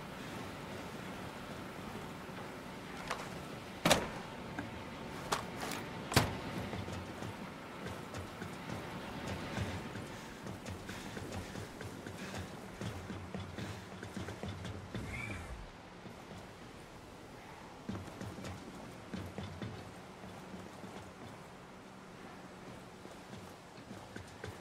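Footsteps thud on metal floors and stairs.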